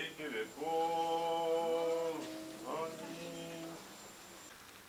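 A group of women sing together.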